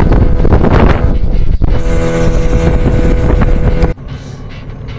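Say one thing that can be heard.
A boat's outboard engine roars loudly and steadily.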